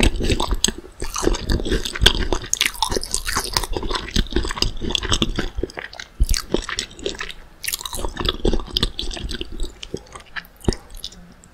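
A young woman chews crunchy food close to a microphone.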